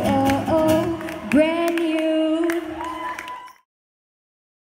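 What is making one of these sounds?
A young woman sings into a microphone over a loudspeaker.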